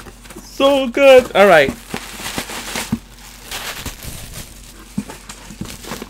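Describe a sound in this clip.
Bubble wrap rustles and crinkles as it is pulled from a cardboard box.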